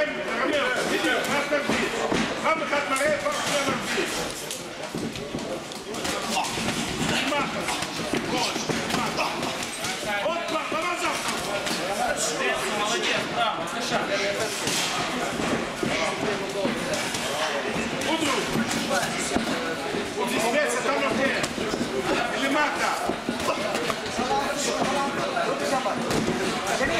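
Boxing gloves thud against each other and on bodies in quick bursts.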